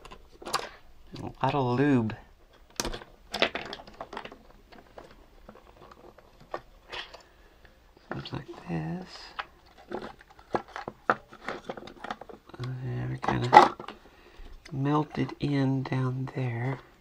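Plastic parts click and creak as they are handled and pulled apart.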